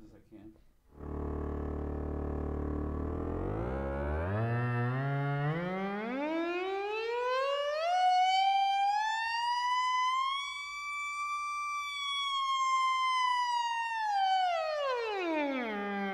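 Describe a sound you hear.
A synthesizer plays a low drone that glides up in pitch and then falls again.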